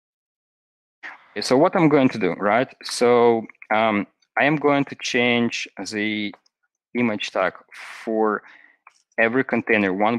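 A young man speaks calmly into a headset microphone, heard as if over an online call.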